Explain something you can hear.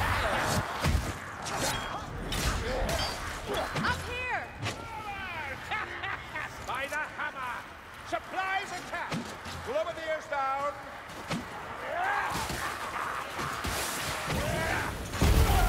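Blades strike and slash with sharp, heavy thuds.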